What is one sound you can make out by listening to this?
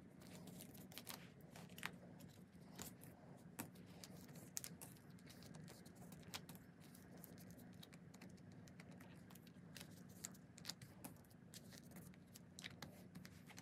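Plastic sleeves crinkle and rustle close by.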